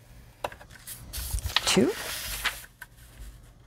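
Paper slides and rustles under a hand.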